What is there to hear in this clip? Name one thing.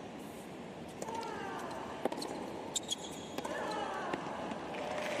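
A tennis ball is struck with sharp pops of a racket.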